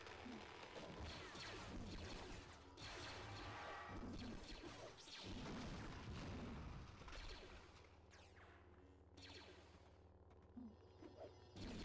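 Lightsabers hum and swing with buzzing swooshes.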